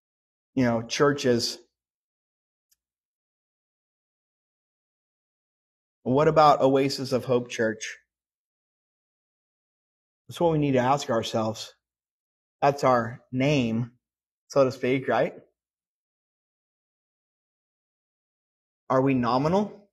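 A middle-aged man speaks with animation into a microphone, in bursts separated by pauses.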